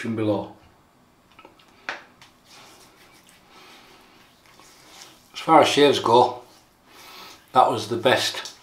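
A middle-aged man speaks calmly and close up, in short bursts.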